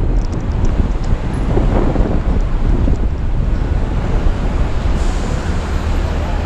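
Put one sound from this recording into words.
Wind rumbles loudly against the microphone while riding outdoors.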